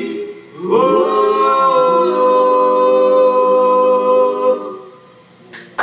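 Electric guitars ring out a loud, long held chord through amplifiers, then fade.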